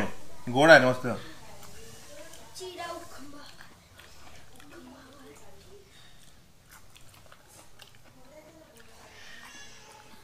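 A man crunches on crisp snacks.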